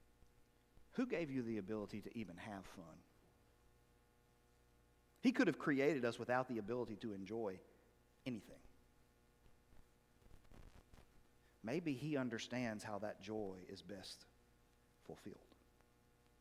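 A middle-aged man speaks calmly into a microphone in a large echoing hall, with pauses between phrases.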